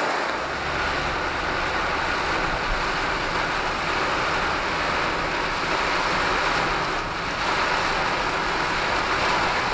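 Windscreen wipers swish back and forth.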